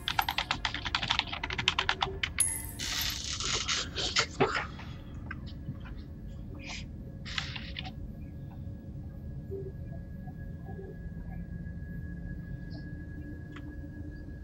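A spaceship's engine hums low and steady.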